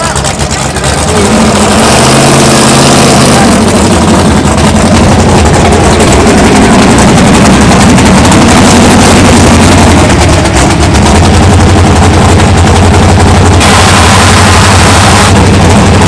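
A loud car engine idles with a deep, rumbling lope close by.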